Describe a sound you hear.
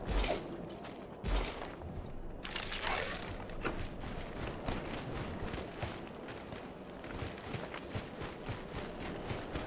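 Footsteps crunch on dry dirt and brush.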